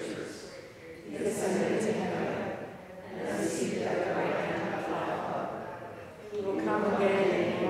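A woman reads aloud calmly in a large echoing hall.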